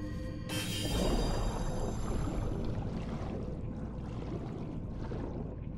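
Water swirls and rumbles with a low, muffled underwater sound.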